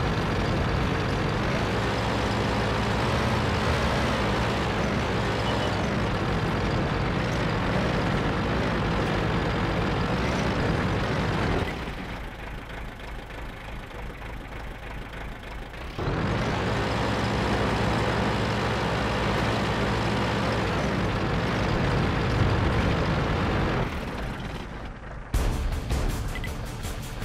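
A tank engine rumbles as the tank drives along.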